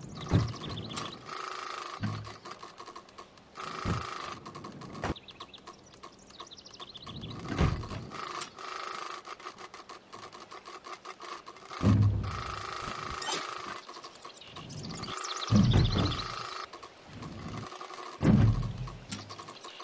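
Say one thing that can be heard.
A trials bicycle lands with heavy thuds onto wooden platforms.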